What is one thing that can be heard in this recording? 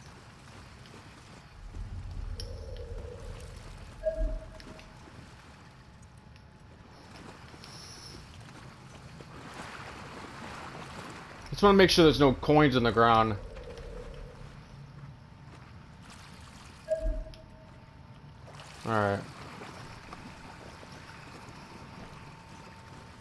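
Footsteps wade and splash through shallow water.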